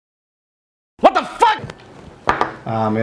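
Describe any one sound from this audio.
Men talk and laugh together.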